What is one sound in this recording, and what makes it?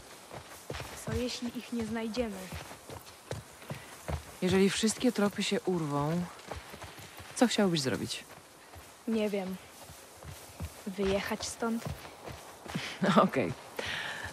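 A man speaks calmly into a nearby microphone.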